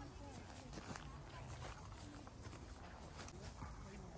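Footsteps crunch softly on dry grass.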